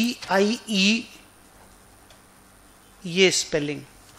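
A pen scratches on paper.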